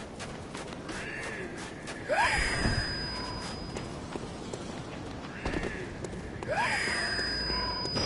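Footsteps tap on a tiled roof.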